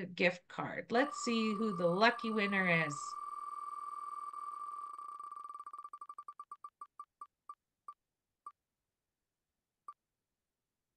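A spinning prize wheel ticks rapidly, slowing down to a stop.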